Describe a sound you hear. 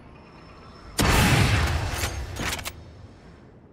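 A sniper rifle fires a single loud, booming shot that echoes briefly.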